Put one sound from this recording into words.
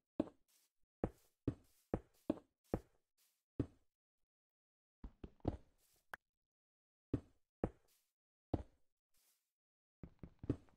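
Stone blocks are placed with short, dull knocks in quick bursts.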